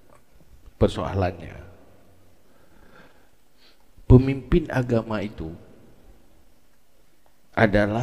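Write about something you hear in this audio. An elderly man speaks calmly and with pauses into a headset microphone.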